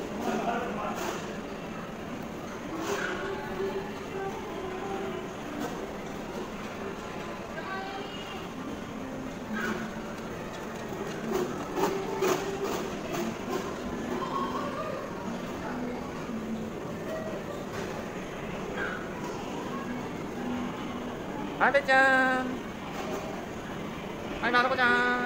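Children chatter and call out.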